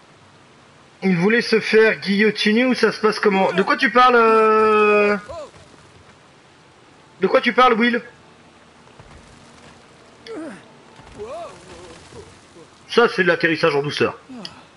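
A young man talks with animation close to a microphone, in bursts.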